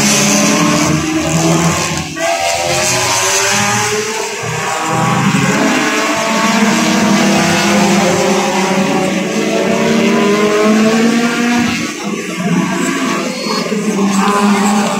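Racing car engines roar and whine loudly, rising and falling in pitch as cars speed past.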